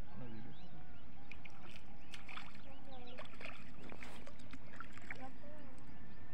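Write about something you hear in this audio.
A fish splashes lightly at the water's surface.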